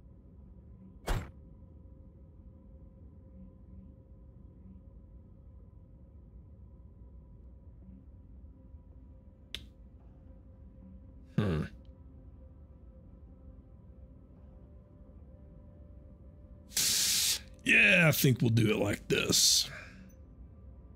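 Short electronic interface sounds click as menu options are picked.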